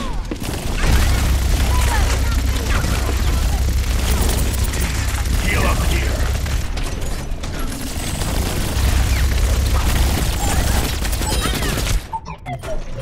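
A video game gatling gun fires rapidly.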